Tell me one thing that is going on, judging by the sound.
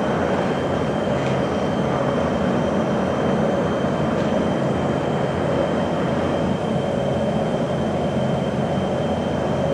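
An oxyacetylene cutting torch flame roars and hisses.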